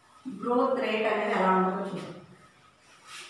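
A woman speaks loudly and clearly, as if teaching.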